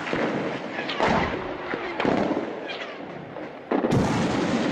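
Explosions boom in the distance, outdoors.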